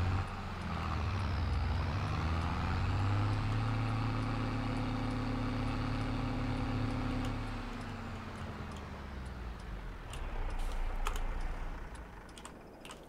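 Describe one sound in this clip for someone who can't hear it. A tractor engine rumbles steadily and then fades.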